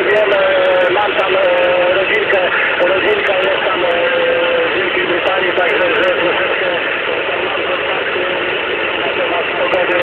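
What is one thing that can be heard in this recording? A two-way radio hisses and crackles with steady static.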